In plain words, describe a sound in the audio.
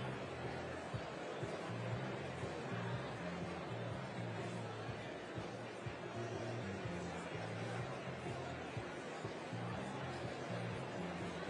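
A large audience chatters in a hall, with a low, echoing murmur.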